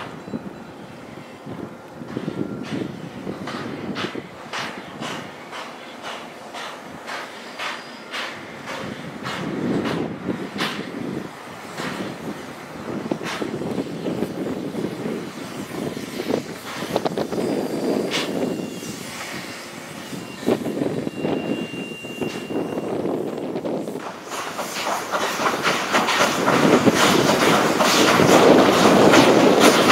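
Freight wagons clank and squeal on the rails.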